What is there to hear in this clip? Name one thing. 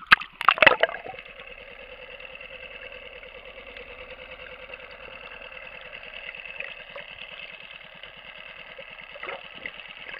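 A muffled underwater rush hisses steadily.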